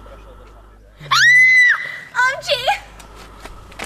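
A young woman shrieks with laughter nearby.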